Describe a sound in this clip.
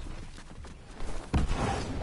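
Wind rushes past a glider.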